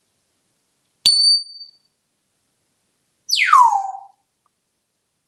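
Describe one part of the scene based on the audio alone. A parrot gives sharp whistles, one swooping down.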